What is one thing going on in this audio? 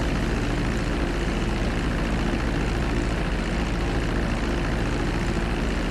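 A small propeller plane's engine drones steadily close by.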